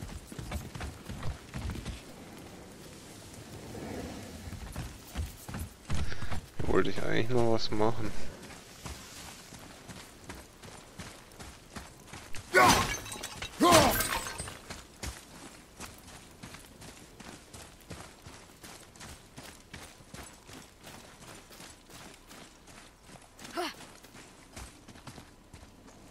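Heavy footsteps thud steadily on stone.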